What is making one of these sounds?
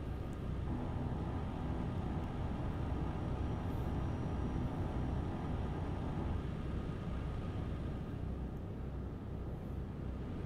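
Tyres roll steadily along a road.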